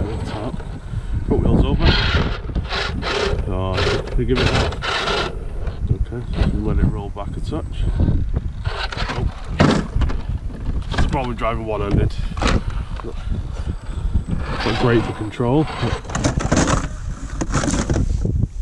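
A small electric motor whines as a toy truck crawls over rock.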